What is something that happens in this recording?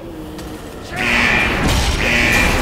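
Game combat sounds clash and boom loudly.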